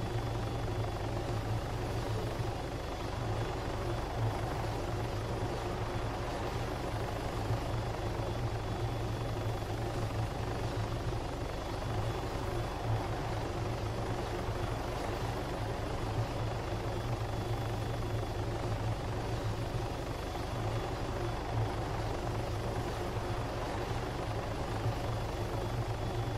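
A helicopter's rotor thumps steadily as it hovers close by.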